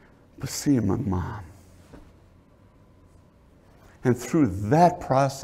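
A middle-aged man speaks with animation through a microphone in a slightly echoing room.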